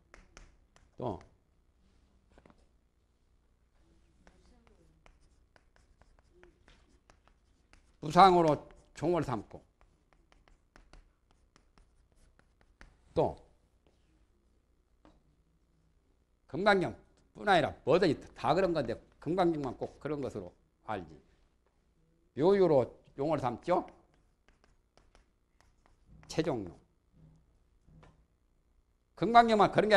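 A man speaks calmly in short phrases through a microphone, with pauses.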